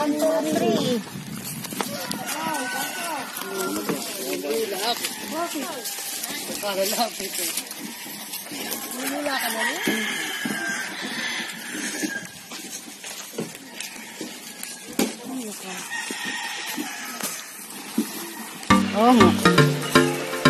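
Men and women talk among themselves outdoors.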